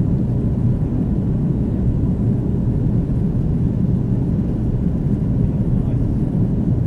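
Jet engines roar with a steady low rumble inside an aircraft cabin.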